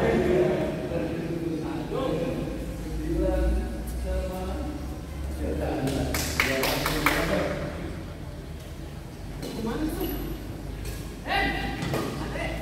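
Men call out and talk across the hall.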